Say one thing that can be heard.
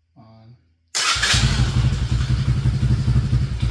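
A small quad engine starts and runs with a loud, rapid chugging rumble.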